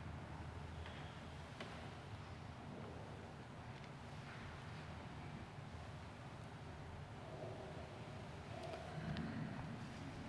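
An elderly man murmurs a prayer quietly into a microphone in a large echoing hall.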